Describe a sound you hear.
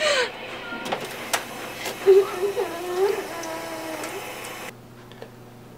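Water runs from a drinking fountain.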